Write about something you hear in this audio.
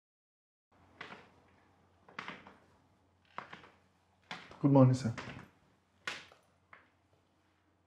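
Footsteps thud down a staircase indoors.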